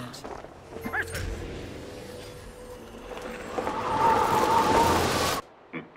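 A ring of fire whooshes and roars.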